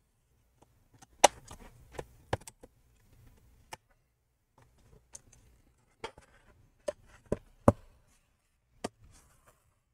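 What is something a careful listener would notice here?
A plastic pry tool clicks and snaps along the edge of a laptop case.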